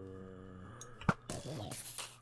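A block crumbles as it is broken.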